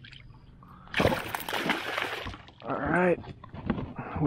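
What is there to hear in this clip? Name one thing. A fish thrashes and splashes loudly at the surface of the water.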